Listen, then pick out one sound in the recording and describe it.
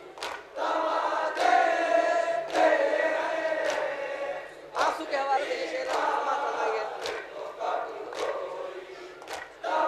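A group of men beat their chests in a steady rhythm.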